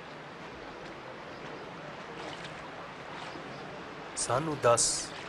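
Water laps and ripples gently.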